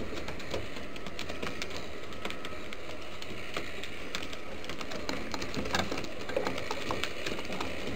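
A pigeon coos softly.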